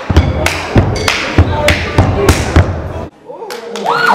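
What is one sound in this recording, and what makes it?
Feet stomp and hands clap in a quick, steady rhythm.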